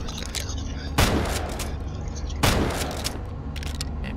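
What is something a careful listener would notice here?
A shotgun fires loudly twice.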